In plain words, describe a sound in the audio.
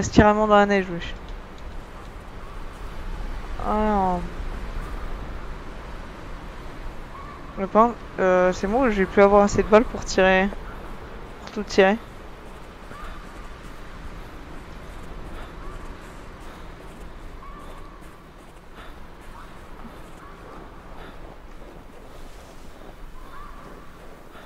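Strong wind blows steadily in a snowstorm.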